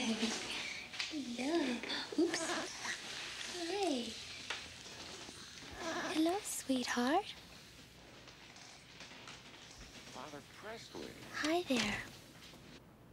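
A woman speaks softly and warmly.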